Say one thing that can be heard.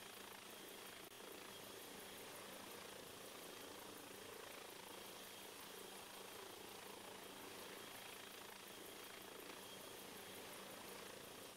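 A helicopter's engine whines steadily close by.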